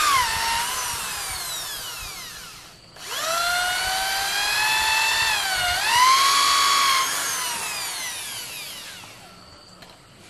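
A power tool whines loudly as it cuts through a rubber tyre.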